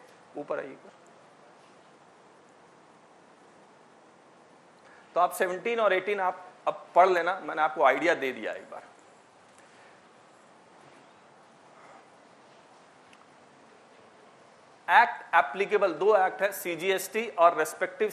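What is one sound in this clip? A man speaks calmly, lecturing, with pauses between phrases.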